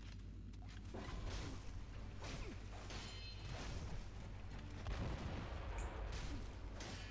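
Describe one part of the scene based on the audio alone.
Swords clash with sharp metallic clangs.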